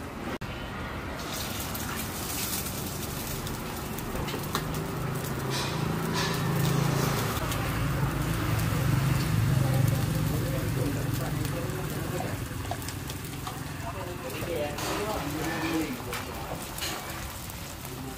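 Eggs sizzle on a hot griddle.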